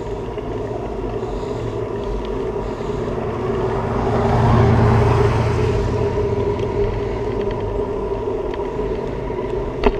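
Wind rushes past, swelling and then easing.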